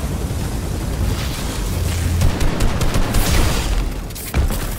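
A crackling energy blast bursts with a loud electric hum.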